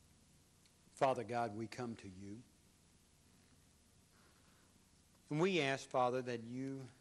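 A man speaks slowly into a microphone.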